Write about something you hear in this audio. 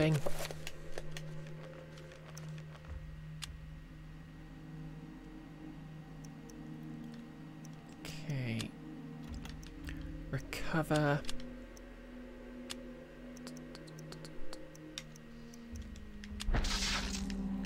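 Menu selections click and chime now and then.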